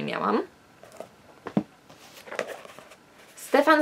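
A book's pages rustle in a young woman's hands.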